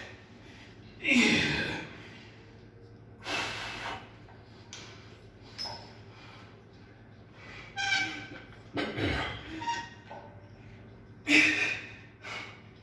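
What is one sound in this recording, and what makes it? A man grunts and exhales hard with effort, close by.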